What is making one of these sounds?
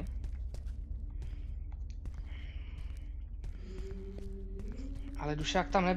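Footsteps thud on wooden boards and then on pavement.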